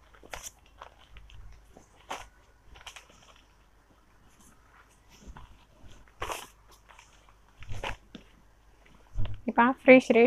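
Silk fabric rustles and swishes as it is unfolded and handled.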